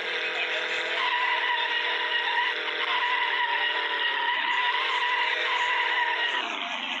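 Tyres squeal as a sports car drifts.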